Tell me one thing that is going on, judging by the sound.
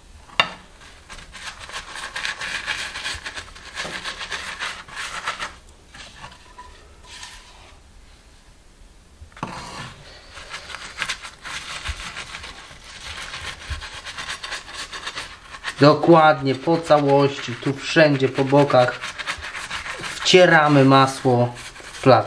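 A pastry brush swishes and dabs across a flatbread.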